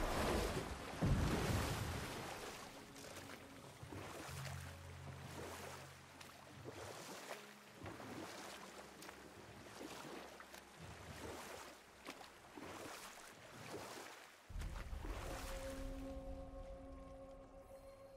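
Water laps and splashes around a rowing boat.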